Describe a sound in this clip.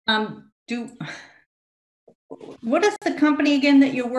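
An older woman talks over an online call.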